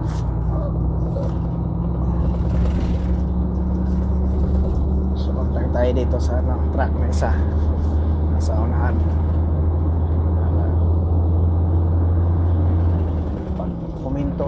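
A vehicle's engine hums steadily from inside the cab.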